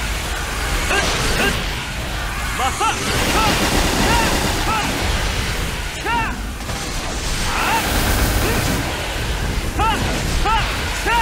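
Rapid game attack effects whoosh and crash without pause.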